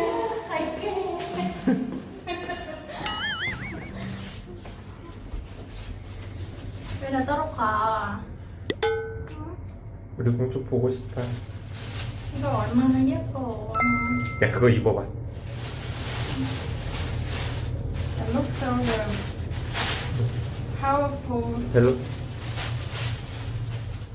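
A young woman talks and laughs playfully close by.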